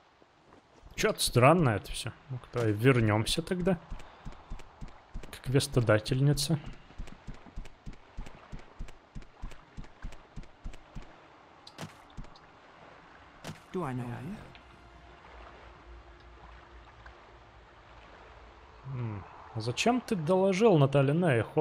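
A young man talks into a close microphone, casually and with animation.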